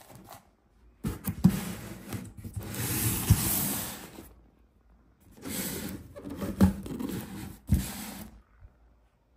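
A cardboard box slides and thumps on a wooden surface.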